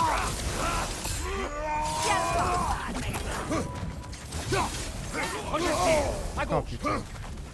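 Fire crackles and whooshes in bursts.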